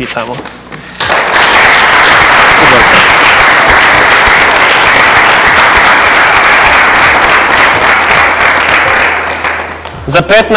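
An audience claps and cheers loudly in an echoing room.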